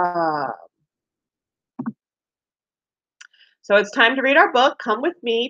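A woman speaks with animation through a microphone on an online call.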